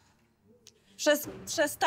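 A woman speaks calmly to a class.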